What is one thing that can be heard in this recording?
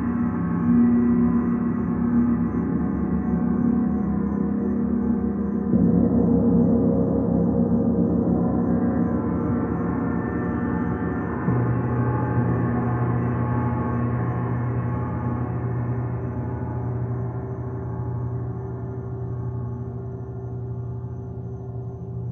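A large gong hums and swells with deep, shimmering rolls.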